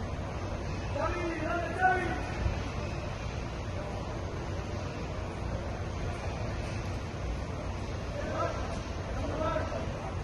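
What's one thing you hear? Men and women in a small crowd call out and chatter nearby, outdoors.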